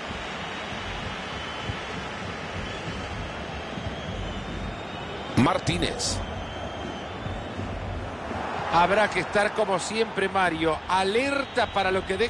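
A large stadium crowd murmurs and roars steadily.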